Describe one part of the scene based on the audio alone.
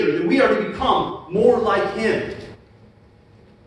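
A man speaks with animation through a microphone in a large room.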